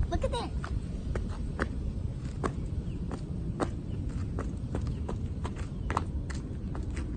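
Sneakers thud on asphalt as a child hops.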